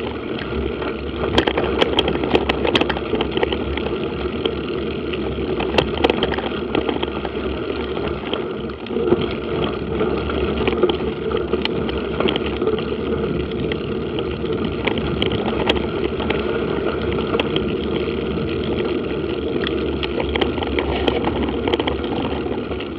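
Tyres roll and crunch steadily over a gravel track.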